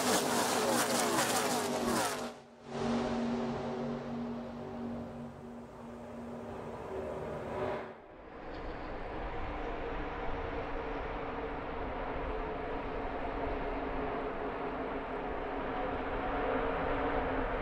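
Racing truck engines roar loudly in a pack.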